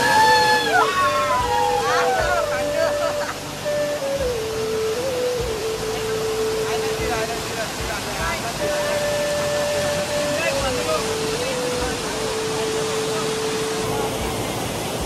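Water rushes and splashes down a waterfall.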